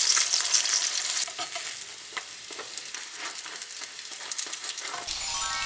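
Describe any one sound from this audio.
A metal spatula scrapes against a frying pan.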